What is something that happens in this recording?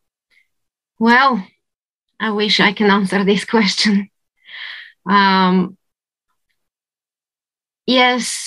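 A woman speaks warmly through an online call, pausing between phrases.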